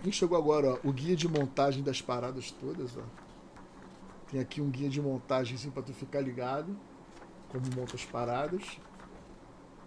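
Paper rustles as a booklet is handled.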